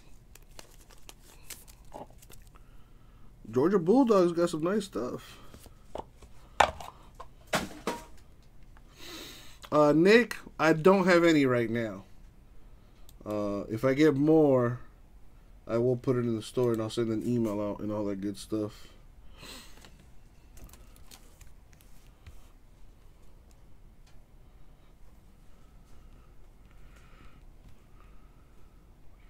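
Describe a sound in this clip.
Cardboard and plastic rustle and tap as cards are handled.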